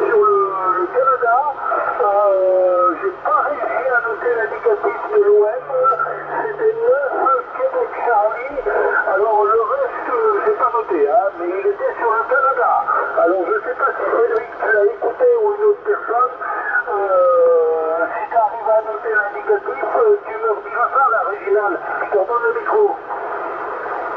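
A voice talks through a radio loudspeaker, sounding thin and narrow.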